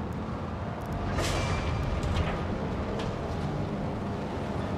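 An elevator rumbles as it moves.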